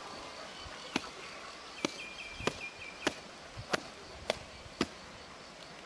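A cleaver chops sharply into a coconut husk, blow after blow.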